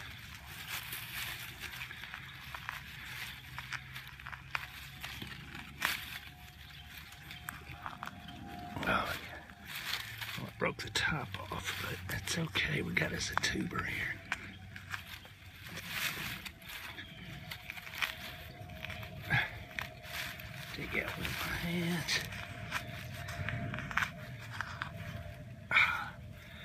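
A hand rustles and crackles through dry grass and leaves.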